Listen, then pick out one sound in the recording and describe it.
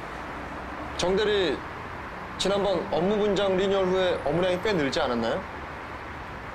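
A man answers calmly up close.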